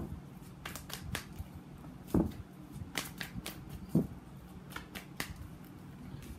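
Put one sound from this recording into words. Playing cards riffle and snap as a deck is shuffled by hand.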